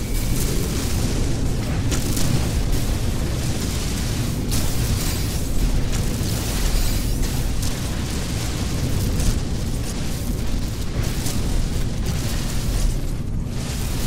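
A spaceship engine rumbles steadily.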